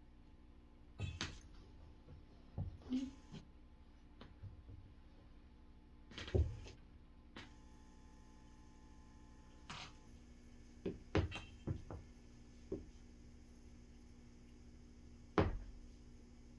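High heels knock and clack on a wooden floor.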